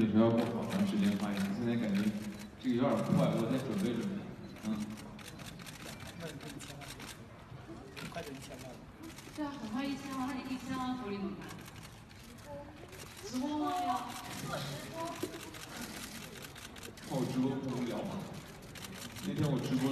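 A young man speaks calmly into a microphone, heard through loudspeakers in a large room.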